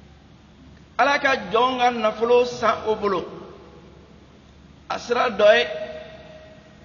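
An elderly man preaches with feeling into a microphone, in bursts with pauses.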